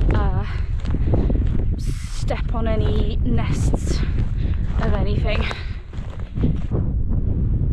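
A woman speaks calmly, close to a microphone.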